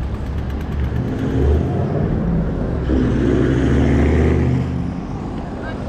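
A bicycle rolls past close by.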